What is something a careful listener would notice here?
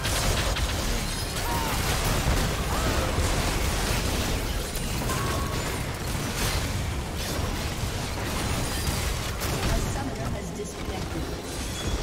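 Game battle sounds clash and crackle with rapid spell blasts and hits.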